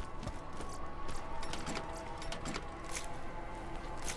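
A metal ammo box clicks open.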